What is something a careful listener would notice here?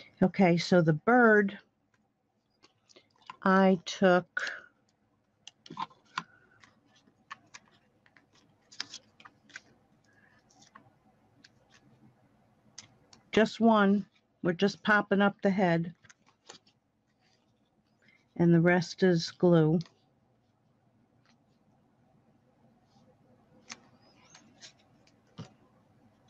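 Paper rustles softly as it is handled.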